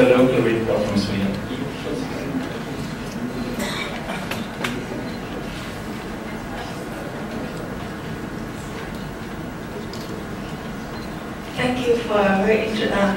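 A man speaks calmly into a microphone through loudspeakers in a large echoing hall.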